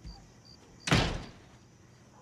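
A door bangs shut.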